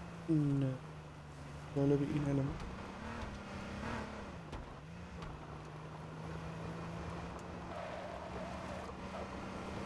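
A car engine hums steadily as the car drives over rough ground.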